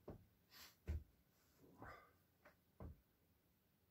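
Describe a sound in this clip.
Gloves rustle and knock as a person handles them.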